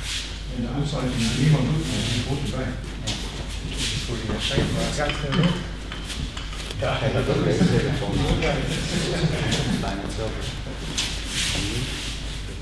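Bare feet shuffle and thump on mats.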